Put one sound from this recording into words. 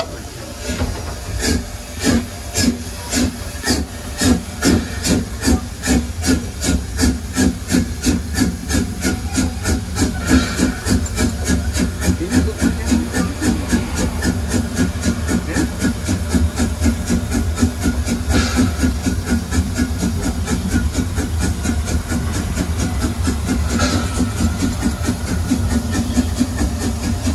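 Train wheels rumble and clack along the rails.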